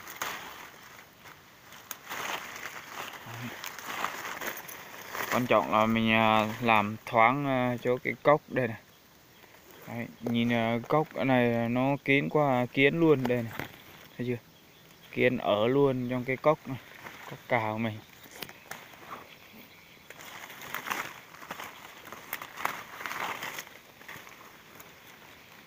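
Leaves rustle as a hand pushes through a shrub's branches.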